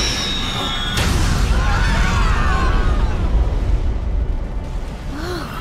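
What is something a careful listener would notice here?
A huge explosion roars with a deep, lingering rumble.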